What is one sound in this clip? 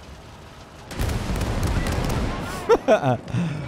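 A shell explodes with a loud, rumbling blast.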